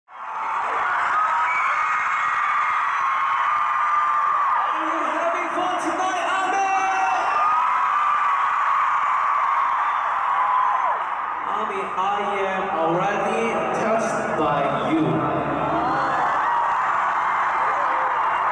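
A large crowd of young women screams and cheers in a big echoing arena.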